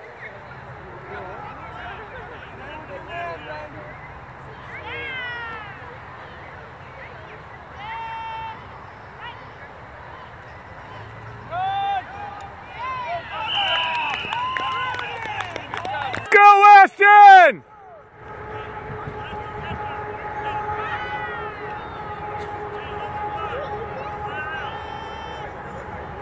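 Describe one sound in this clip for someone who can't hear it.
A crowd of spectators shouts and cheers in the distance outdoors.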